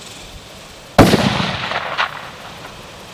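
A rifle fires a single loud shot outdoors, echoing briefly.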